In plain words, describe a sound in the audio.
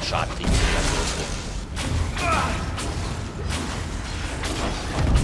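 Magic spells crackle and burst in a fight.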